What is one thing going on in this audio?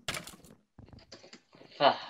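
A sword strikes a bony creature with a dull thud.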